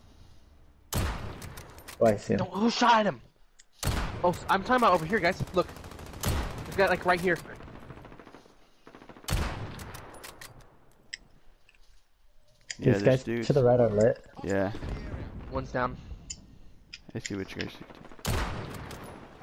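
A rifle fires loud single shots, several seconds apart.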